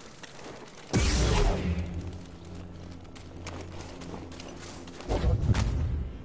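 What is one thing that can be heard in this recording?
A lightsaber ignites with a crackle and hums steadily.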